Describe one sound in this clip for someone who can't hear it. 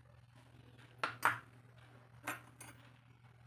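Metal pieces clink as a hand handles them.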